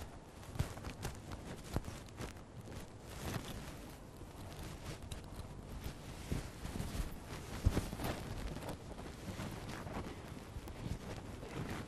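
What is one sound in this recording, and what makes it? Footsteps shuffle softly on a hard floor in a large echoing hall.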